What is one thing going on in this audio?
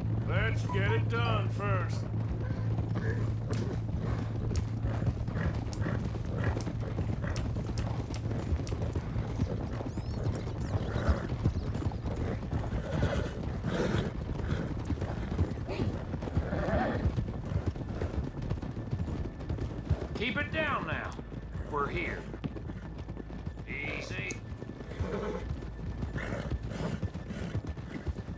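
Horses' hooves thud on a dirt track at a trot.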